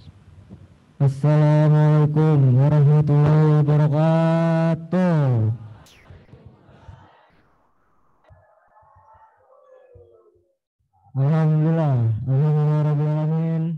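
A man chants in a long, drawn-out melodic voice through a microphone.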